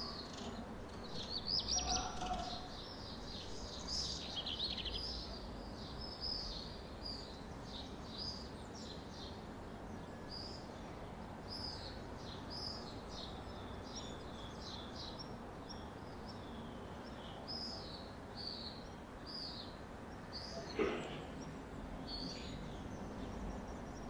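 Small birds chirp and twitter outdoors.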